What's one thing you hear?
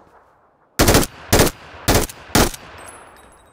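Single rifle shots crack loudly and echo into the distance.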